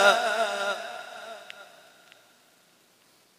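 A man chants through a microphone and loudspeaker, his voice echoing as it fades.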